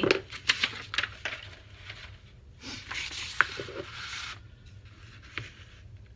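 A large sheet of paper rustles as it is lifted and unfolded.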